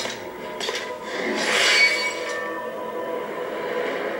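Metal swords clash and ring.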